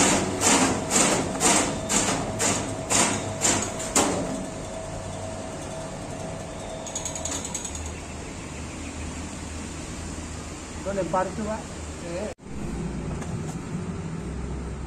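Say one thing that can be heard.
A machine motor hums steadily nearby.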